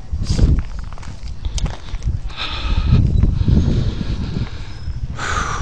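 Footsteps scuff on a concrete sidewalk.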